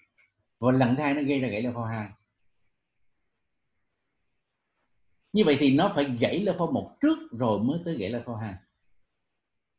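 A man lectures calmly over an online call, with pauses.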